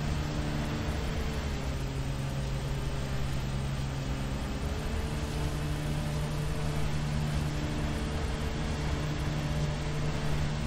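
A lawn mower engine hums steadily, its pitch shifting slightly.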